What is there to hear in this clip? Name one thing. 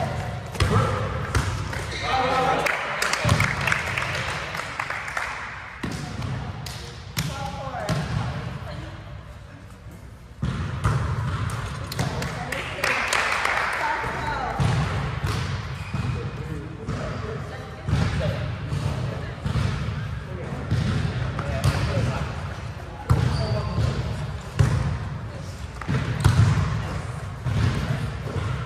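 A volleyball is struck with sharp slaps in a large echoing gym.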